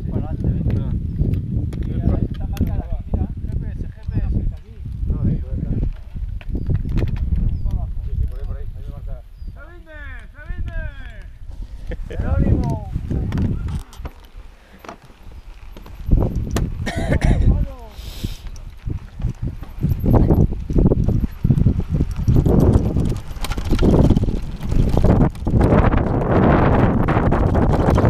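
A mountain bike rattles and clatters over bumpy ground.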